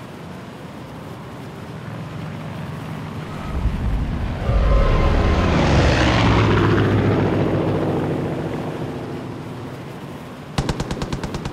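Wind rushes loudly past a gliding wingsuit, swelling and then slowly fading.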